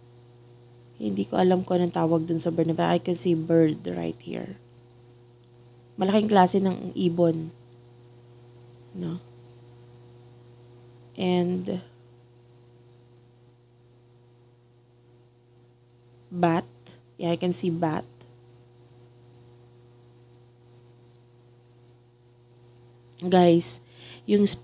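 A woman sings close into a microphone, in short phrases with pauses.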